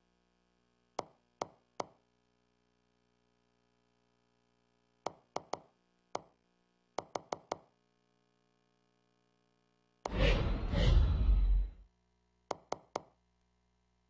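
Short electronic menu clicks tick one after another.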